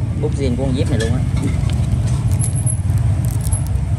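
A metal lighter clicks softly as hands handle it.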